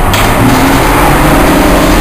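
Water sprays hard from a water cannon nearby.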